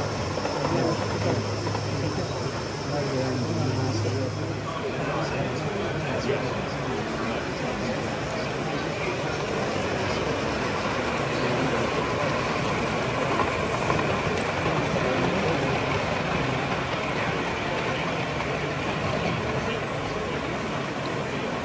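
A model train rumbles along metal rails.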